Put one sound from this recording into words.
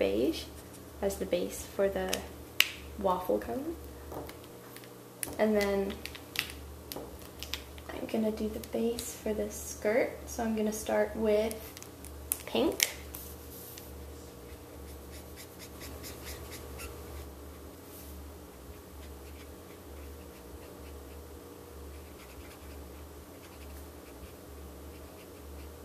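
A felt marker scratches and squeaks across paper.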